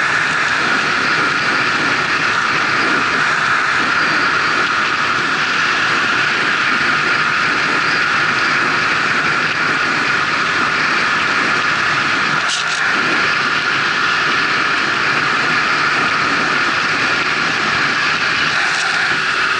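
Tyres roar steadily on a highway as a car drives along at speed.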